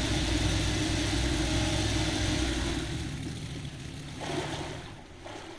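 A hovercraft engine roars steadily, then fades away.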